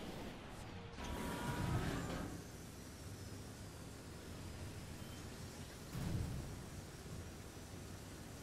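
A vehicle engine hums as it drives.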